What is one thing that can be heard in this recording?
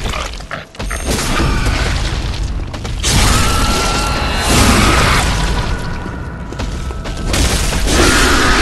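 A large beast roars and snarls loudly.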